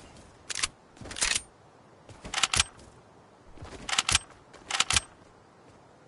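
Gunshots crack in short, quick bursts.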